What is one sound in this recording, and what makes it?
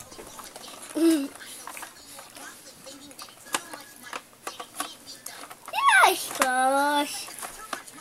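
A baby coos and squeals close by.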